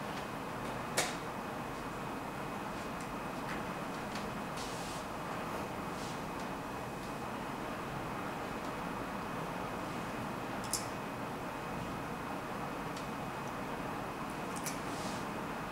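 Chess pieces click sharply on a board now and then.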